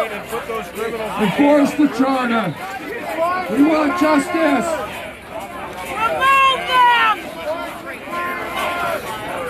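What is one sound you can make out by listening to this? A crowd of men chants loudly outdoors.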